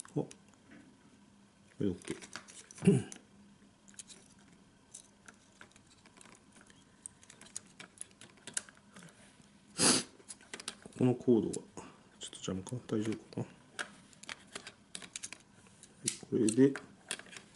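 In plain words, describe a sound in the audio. Plastic parts click and rattle as hands pry apart a small casing.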